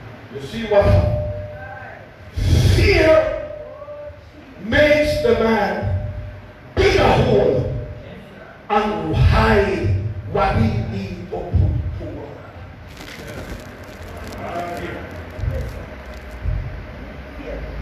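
An elderly man preaches forcefully into a microphone over loudspeakers in an echoing hall.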